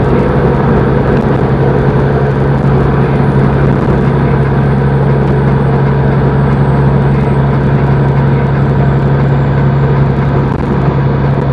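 Tyres roll on a road with a steady rumble.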